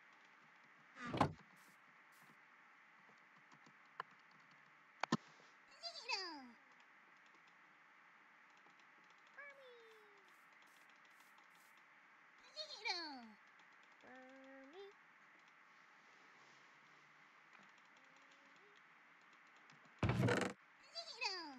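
A wooden chest creaks open and shut several times.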